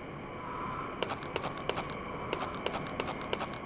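Footsteps of a video game character crunch on a dirt path.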